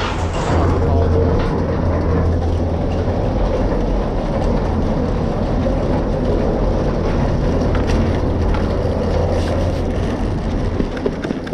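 A chairlift's machinery hums and rumbles loudly overhead.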